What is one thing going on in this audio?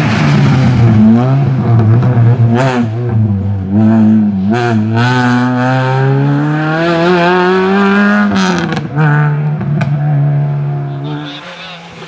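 A rally car engine revs hard and shifts gears as the car speeds away and fades.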